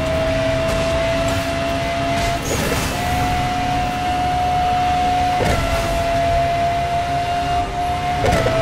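A racing car engine roars at high speed with a steady whine.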